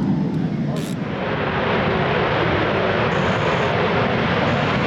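A jet engine blasts to a deep roar as a fighter jet takes off.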